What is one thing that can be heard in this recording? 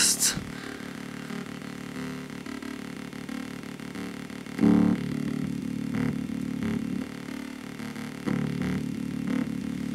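Fingers click and tap on wires and knobs.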